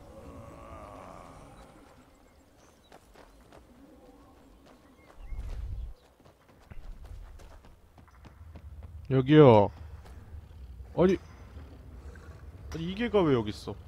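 Footsteps tread on gravel and wooden planks.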